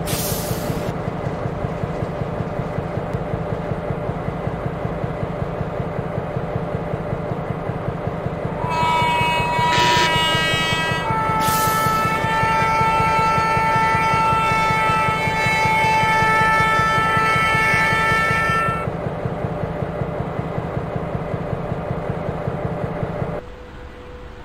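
A train engine throbs in a steady, fast rhythm.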